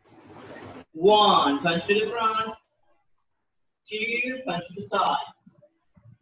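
A man speaks loudly and firmly nearby.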